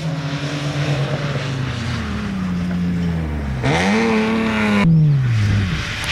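A car engine revs hard, its pitch rising and falling.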